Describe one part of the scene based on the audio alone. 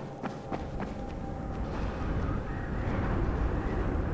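Hands scrape and thump while climbing over a ledge.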